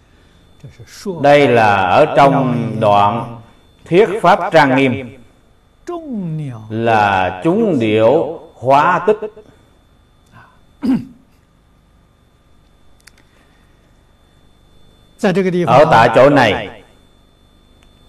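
An elderly man speaks calmly and slowly, close to a microphone, with long pauses.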